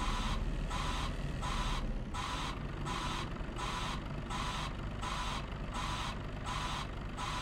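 A reversing alarm beeps in a steady, fast rhythm.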